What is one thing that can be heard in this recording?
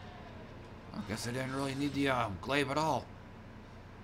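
A short victory fanfare plays.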